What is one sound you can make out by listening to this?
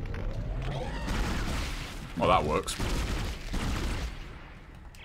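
A plasma gun fires with sharp electric bursts.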